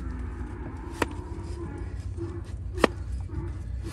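Sharp metallic knocks ring out now and then.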